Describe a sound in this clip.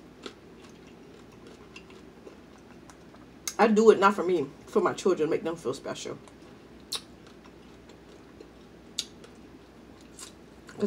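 A young woman sucks and smacks her lips while eating.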